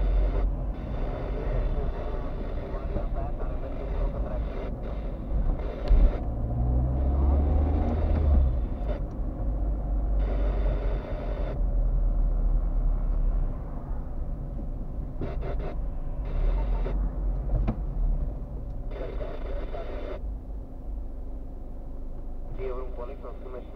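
A car engine hums steadily from inside while driving.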